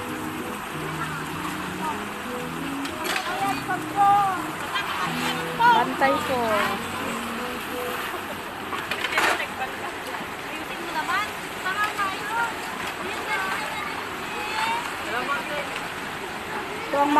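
Young women talk and call out to each other nearby.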